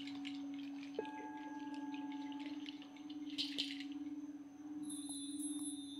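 A gong is struck and rings out.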